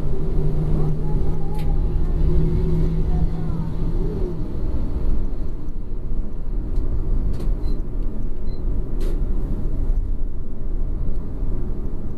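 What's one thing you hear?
A vehicle engine rumbles steadily from inside while driving.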